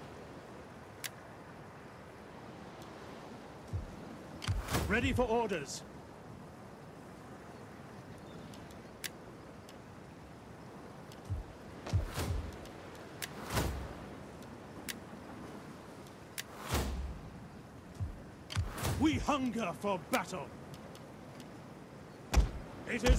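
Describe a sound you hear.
Short game interface clicks sound now and then.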